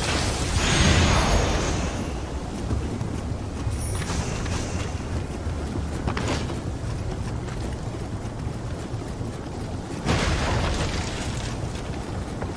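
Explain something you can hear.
Footsteps run across a wooden floor.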